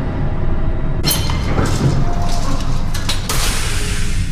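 A metal elevator gate clatters and rattles as it slides open.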